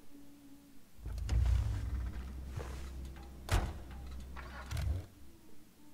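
A car engine idles and revs in an enclosed space.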